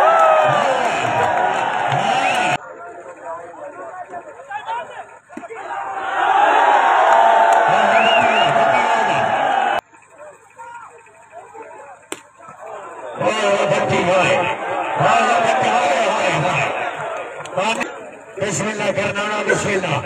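A large crowd cheers and shouts outdoors.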